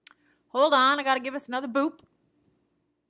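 A young woman speaks briefly and expressively into a close microphone.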